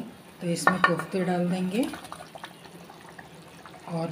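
Dumplings plop into a simmering sauce.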